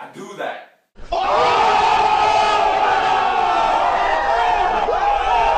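A crowd shouts and cheers loudly outdoors.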